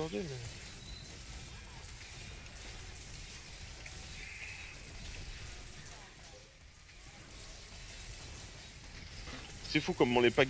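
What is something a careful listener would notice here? Magic spells crackle and burst in rapid bursts.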